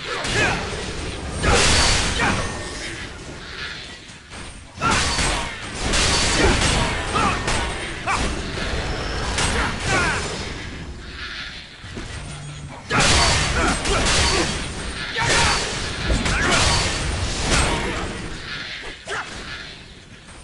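Game weapons clash and spell effects burst in a fast fight.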